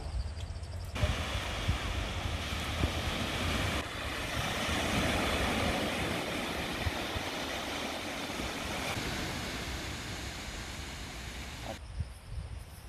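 Waves wash steadily onto a beach outdoors.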